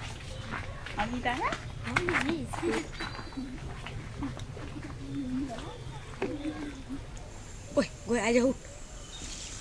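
Young children talk quietly nearby.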